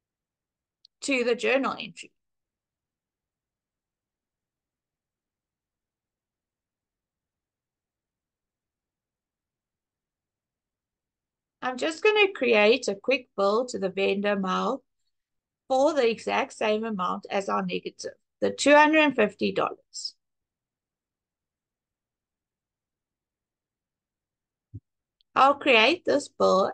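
A young woman speaks calmly and clearly into a close microphone, in short bursts with pauses.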